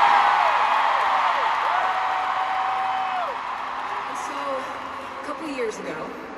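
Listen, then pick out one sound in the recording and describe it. A large crowd cheers and screams.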